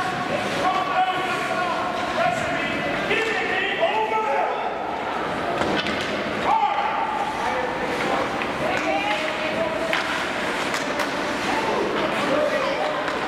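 Ice skates scrape and carve across a rink.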